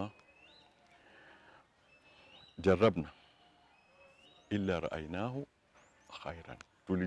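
An elderly man speaks calmly and slowly into a microphone, with pauses.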